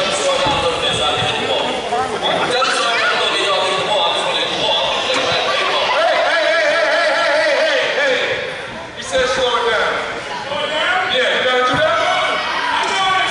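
A crowd chatters and calls out in a large echoing gym.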